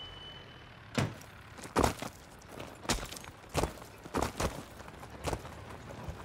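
Boots thud and crunch on gravel as soldiers run.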